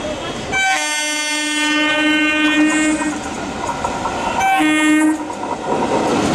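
A locomotive horn blares loudly twice.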